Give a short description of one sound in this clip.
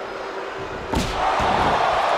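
A heavy body slams onto a wrestling ring mat.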